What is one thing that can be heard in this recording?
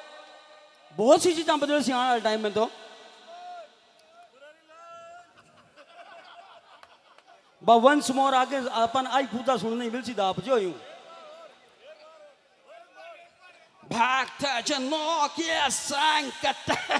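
A middle-aged man sings loudly into a microphone, amplified through loudspeakers.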